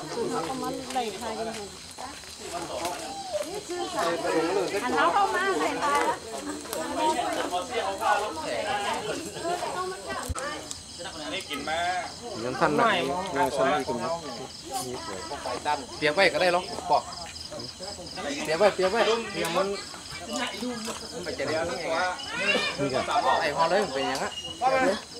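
Several men talk and call out nearby.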